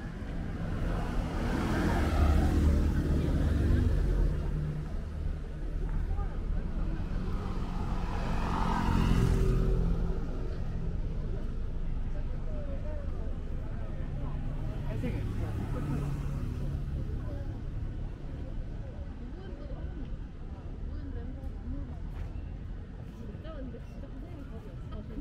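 Traffic rumbles steadily in the distance outdoors.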